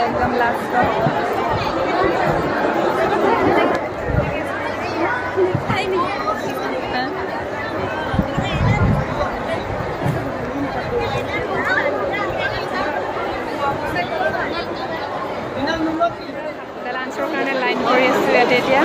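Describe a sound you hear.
A young woman speaks cheerfully close up.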